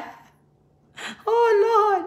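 A middle-aged woman laughs loudly.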